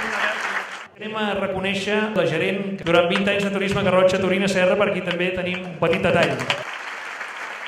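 A man speaks calmly into a microphone over loudspeakers.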